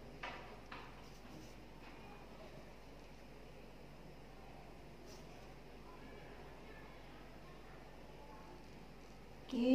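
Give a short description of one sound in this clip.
A pen scratches faintly across paper.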